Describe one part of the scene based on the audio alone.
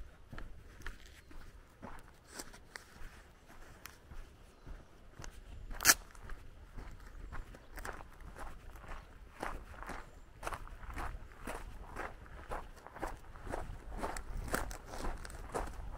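Footsteps crunch steadily on gravel close by.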